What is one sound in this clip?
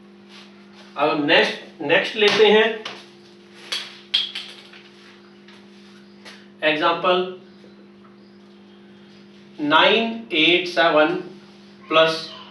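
A man speaks clearly and with emphasis, close by.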